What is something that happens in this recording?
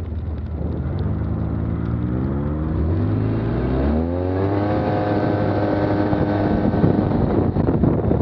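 An all-terrain vehicle engine revs up, rising in pitch as it pulls away.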